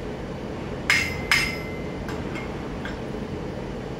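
A metal tool strikes a steel pipe flange with a ringing clang.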